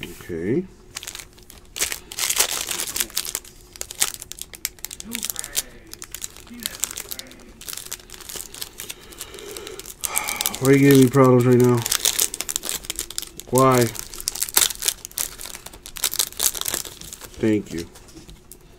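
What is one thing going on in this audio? Plastic wrapping crinkles and tears as hands open a pack.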